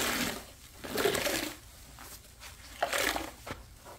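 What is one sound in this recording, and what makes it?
Water drips and splashes from a squeezed sponge.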